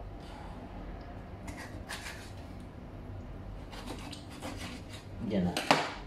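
A knife cuts through fish with soft taps.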